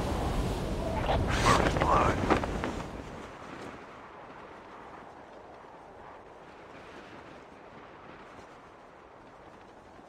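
Wind rushes loudly during a parachute descent, then softens.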